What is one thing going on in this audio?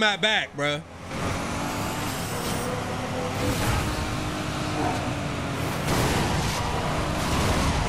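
A racing car engine roars steadily.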